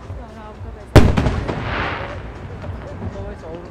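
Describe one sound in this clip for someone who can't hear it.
A firework bursts with a loud boom that echoes away.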